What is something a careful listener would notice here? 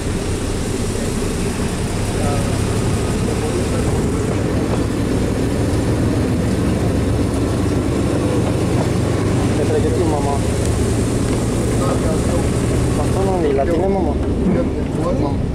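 Wind rushes past an open window.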